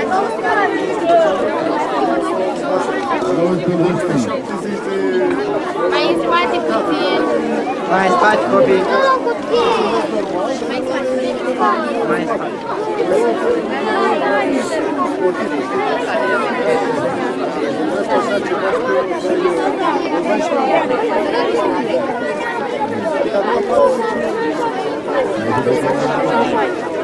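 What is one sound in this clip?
A crowd of adults and children chatters all around outdoors.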